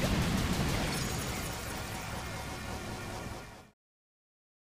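Electronic game music plays loudly.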